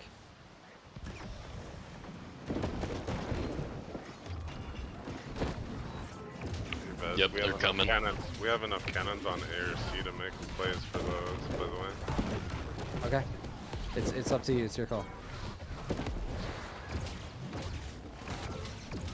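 Magic spells crackle and burst in a busy fight.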